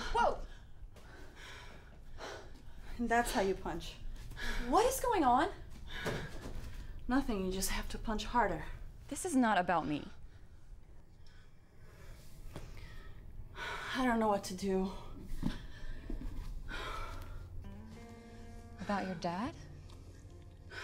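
A woman speaks emotionally and with animation, close by.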